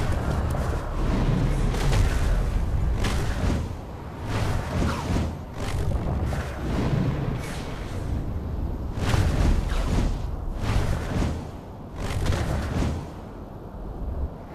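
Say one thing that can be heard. Rushing whooshes rise and fall again and again as a game character leaps through the air.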